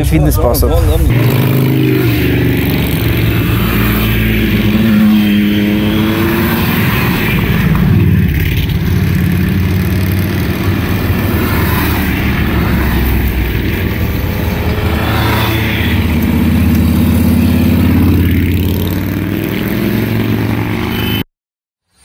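Motorcycle engines rumble as motorcycles ride past one after another.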